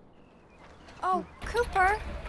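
A young woman speaks briefly, a short way off.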